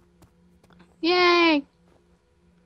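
A man exclaims briefly and loudly into a headset microphone.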